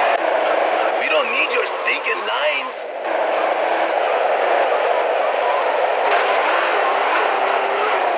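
Car tyres screech.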